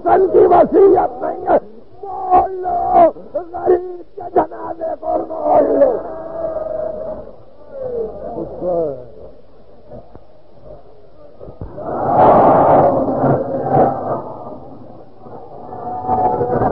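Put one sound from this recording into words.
An elderly man recites with feeling through an old, worn recording.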